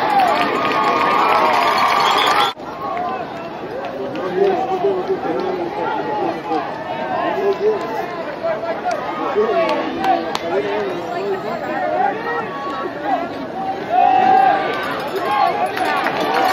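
A large crowd of spectators chatters and cheers outdoors.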